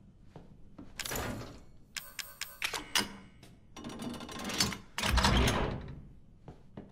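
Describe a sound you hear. A metal medallion clanks into place in a heavy door.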